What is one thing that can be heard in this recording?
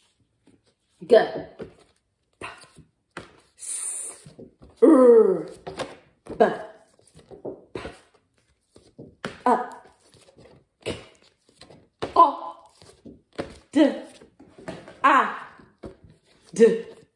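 A woman sounds out short letter sounds one at a time, close up.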